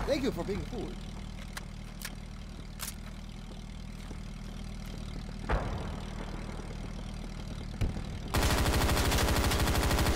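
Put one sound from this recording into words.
A vehicle engine idles with a low hum.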